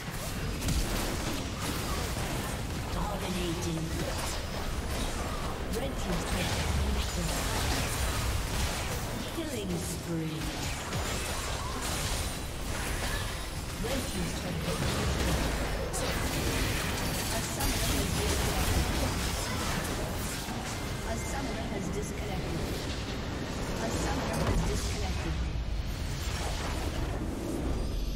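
Game spell effects crackle and explode throughout a battle.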